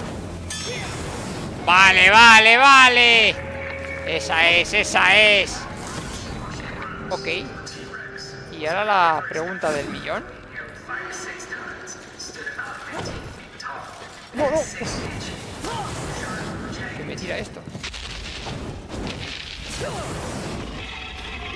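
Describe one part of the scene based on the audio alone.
Flames whoosh and roar with sharp sword swings.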